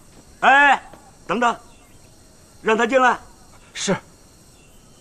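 A middle-aged man speaks sternly in short commanding bursts, close by.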